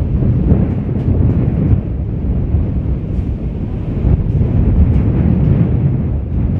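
Wind blows outdoors, rumbling against the microphone.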